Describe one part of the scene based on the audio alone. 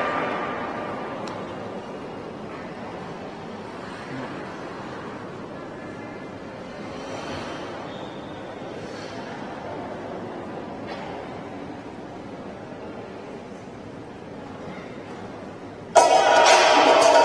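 Ice skate blades scrape and glide across ice in a large echoing arena.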